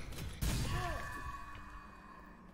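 A blade slashes through an enemy with a sharp whoosh.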